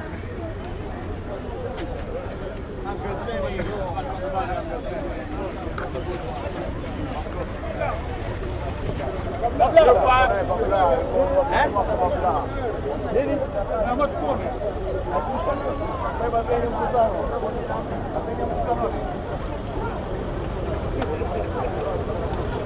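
A crowd of men chatter and talk over one another outdoors.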